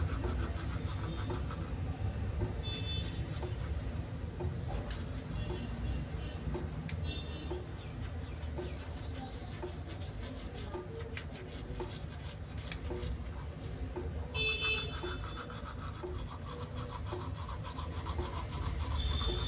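A toothbrush scrubs wetly against teeth, close by.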